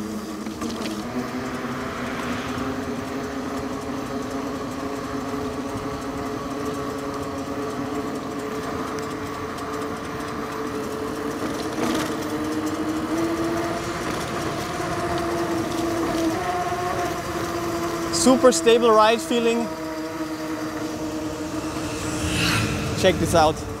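An electric bike motor whines steadily.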